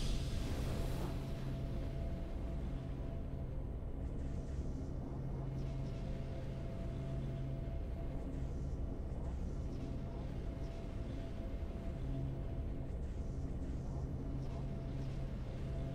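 Calm video game victory music plays.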